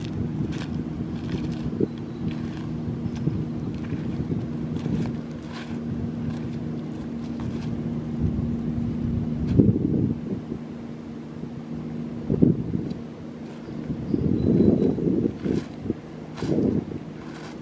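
Footsteps crunch on loose pebbles.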